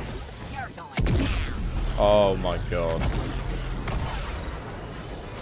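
Blaster shots and blasts crack and boom.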